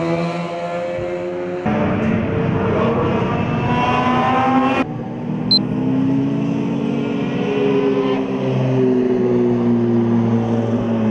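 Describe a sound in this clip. A sports car engine roars loudly, revving up and down as it races past.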